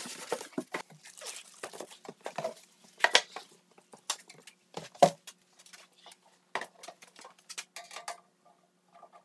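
Plastic sheeting crinkles and rustles close by.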